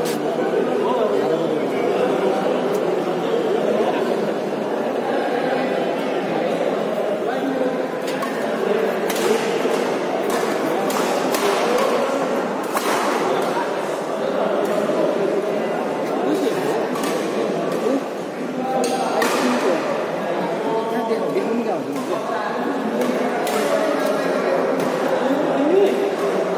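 Rackets smack a shuttlecock back and forth.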